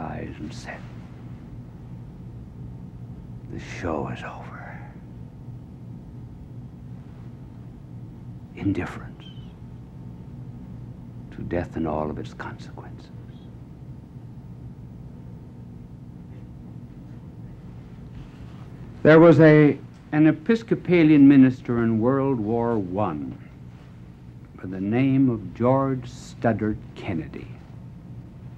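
An elderly man speaks dramatically into a microphone, with long pauses.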